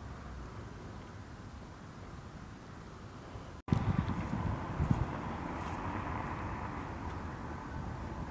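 Wind blows outdoors with low gusty rumbling.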